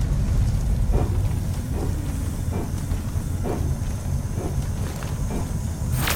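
Footsteps thud softly on a metal floor.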